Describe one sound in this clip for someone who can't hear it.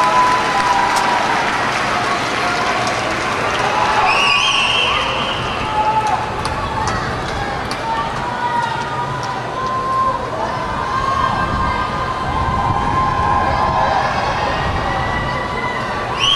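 A marching band plays brass music in a large echoing stadium.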